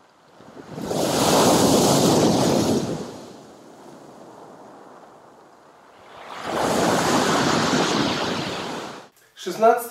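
Surf rushes and washes over pebbles.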